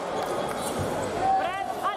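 Shoes squeak sharply on the floor.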